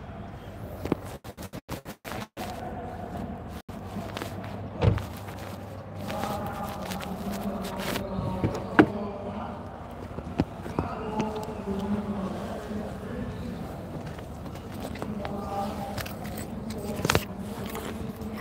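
Fingers rub and brush against the microphone.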